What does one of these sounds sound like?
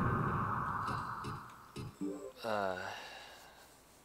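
Short electronic menu beeps sound as options are chosen.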